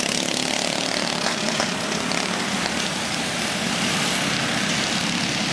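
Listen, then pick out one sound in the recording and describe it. Small engines buzz and whine steadily nearby outdoors.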